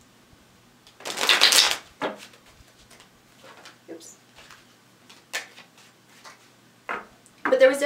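Cards riffle and shuffle in a young woman's hands.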